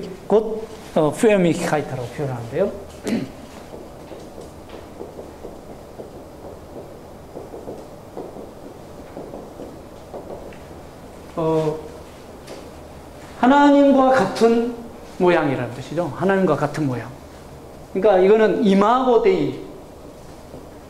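A man lectures calmly into a microphone, in short bursts with pauses.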